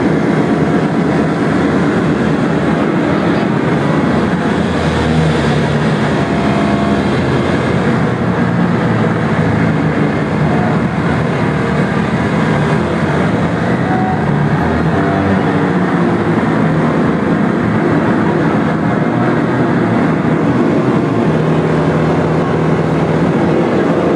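Loud live music with heavy bass booms through a packed, echoing hall.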